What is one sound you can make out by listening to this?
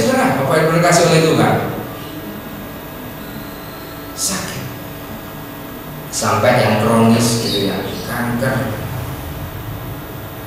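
A man speaks into a microphone over loudspeakers in an echoing room, with pauses.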